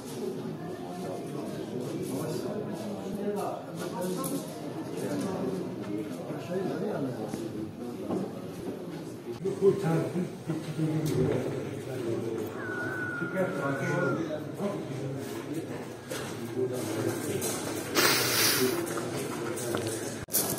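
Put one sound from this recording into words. A crowd of men murmurs and talks nearby throughout.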